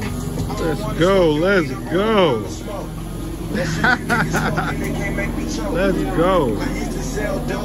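A young woman calls out loudly in a sing-song voice close by.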